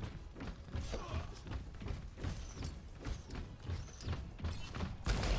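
Footsteps thud steadily as a game character runs.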